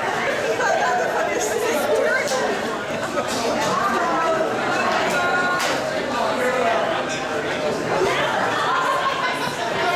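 A woman laughs loudly nearby.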